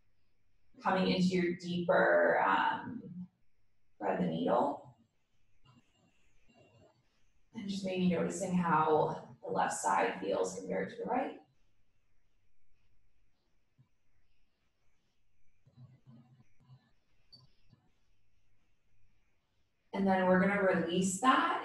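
A woman speaks calmly and gives instructions, with long pauses between phrases.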